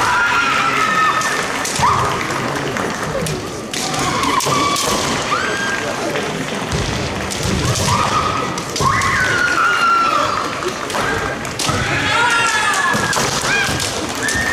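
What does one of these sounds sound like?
Fencers shout loud, drawn-out battle cries in a large echoing hall.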